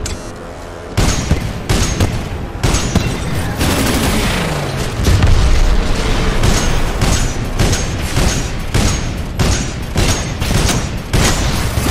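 Heavy gunfire bursts in rapid, repeated volleys.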